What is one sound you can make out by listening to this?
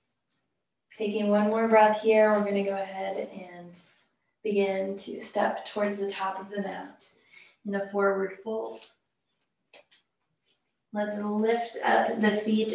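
A woman speaks calmly and clearly, close to a microphone, giving instructions.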